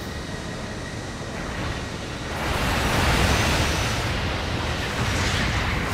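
Jet thrusters roar as a giant robot boosts forward.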